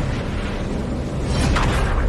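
Energy blasts zap and streak past.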